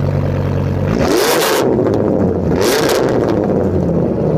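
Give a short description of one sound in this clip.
An engine revs sharply twice and settles back.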